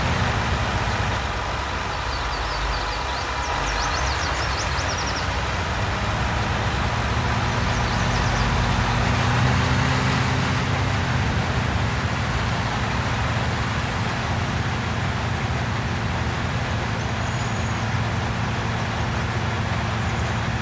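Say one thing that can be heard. A heavy diesel engine rumbles steadily as a large harvester drives along.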